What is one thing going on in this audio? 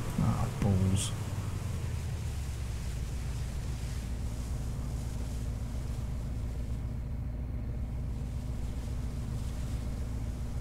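A boat engine hums steadily at low pitch.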